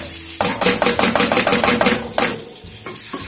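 A spoon stirs and scrapes against a metal pot.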